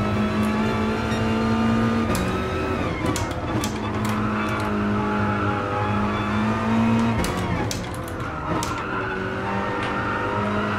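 A racing car engine roars at high revs, dropping in pitch with each gear change.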